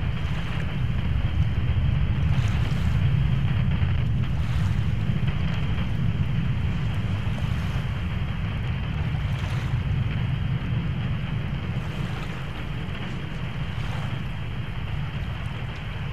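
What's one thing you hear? Guns on a ship fire in quick bursts far off.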